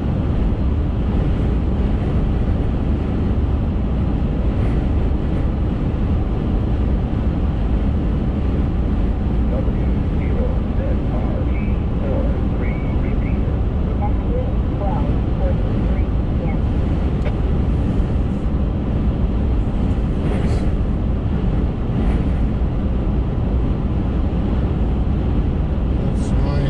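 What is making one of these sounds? Tyres roar steadily on a paved road.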